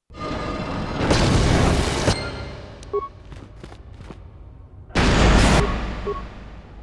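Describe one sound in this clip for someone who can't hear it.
A loud explosion bursts and rumbles.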